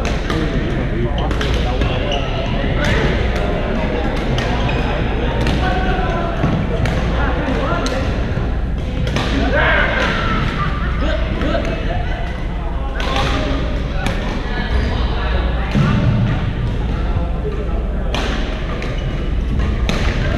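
Shuttlecocks are struck sharply by rackets, echoing in a large hall.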